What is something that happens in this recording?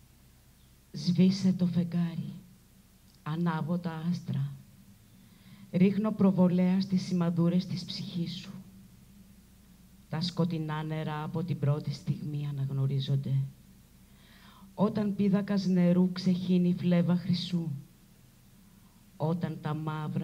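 A woman reads aloud calmly through a microphone.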